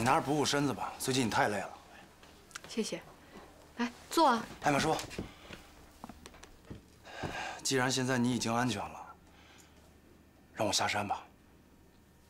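A man speaks quietly and seriously, close by.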